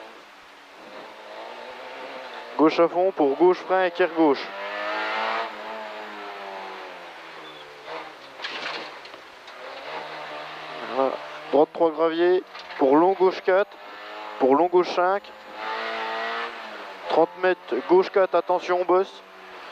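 A rally car engine revs hard and drops in pitch with each gear change.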